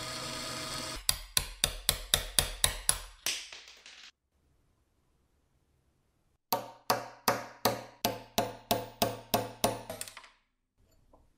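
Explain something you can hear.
A hammer strikes a metal punch in quick, ringing blows.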